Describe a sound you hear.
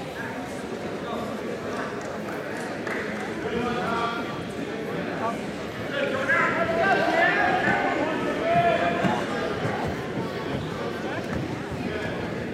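A crowd of spectators talks and calls out in a large echoing hall.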